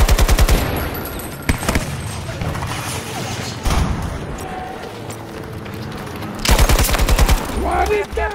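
Rapid gunfire rattles in short, loud bursts.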